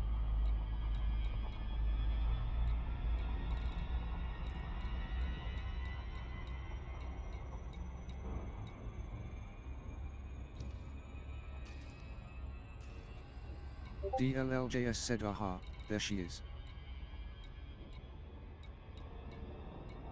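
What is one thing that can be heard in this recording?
Soft electronic clicks tick as menu items change.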